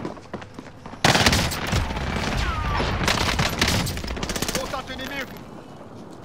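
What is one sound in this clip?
Rapid bursts of automatic rifle fire crack loudly.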